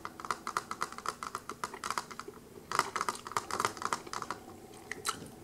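A young woman makes wet mouth and tongue clicking sounds very close to a microphone.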